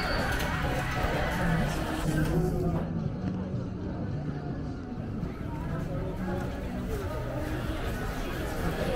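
A crowd of people talks in a busy street nearby.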